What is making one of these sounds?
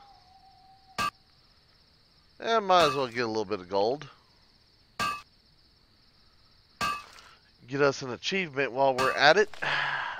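A pickaxe strikes rock with sharp clinks.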